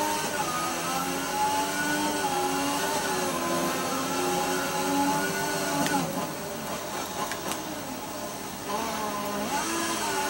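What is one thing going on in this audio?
A racing car engine screams at high revs, drops in pitch as it slows, then climbs again.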